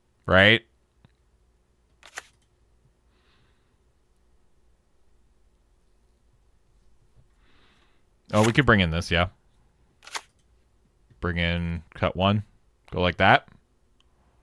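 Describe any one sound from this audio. A man speaks in short bursts through a close microphone.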